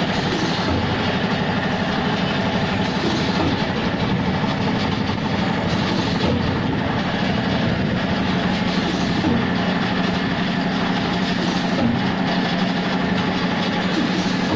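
A packing machine runs with a loud, steady rattling clatter.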